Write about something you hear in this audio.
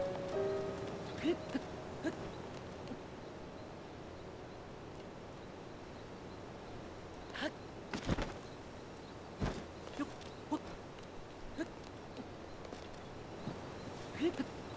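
A game character's footsteps rustle through grass.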